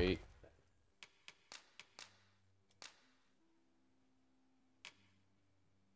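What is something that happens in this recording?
Soft menu clicks tick as a selection moves from item to item.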